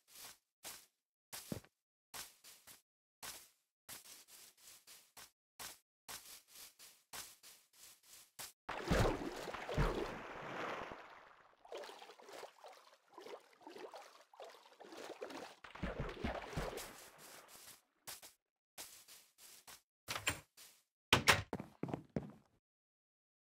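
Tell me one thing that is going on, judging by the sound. Footsteps thud softly on grass at a steady walking pace.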